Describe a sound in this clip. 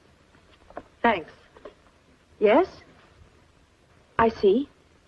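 A young woman speaks into a telephone.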